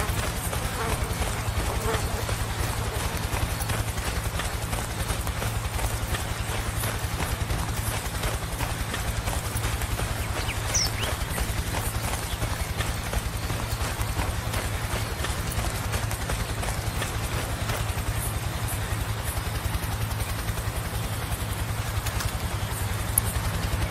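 Footsteps rustle through grass and leafy bushes.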